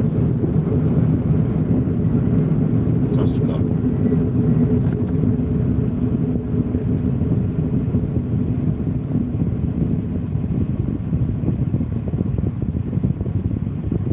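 Tyres roll over the road surface, then fall quiet as the car stops.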